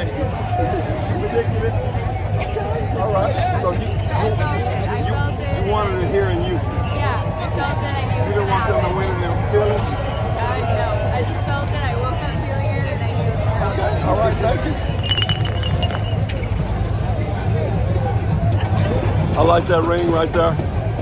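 A man talks and laughs close by.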